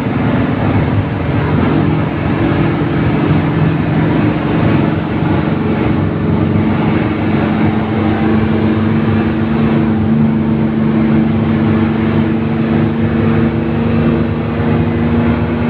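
A bus rattles and shakes over the road.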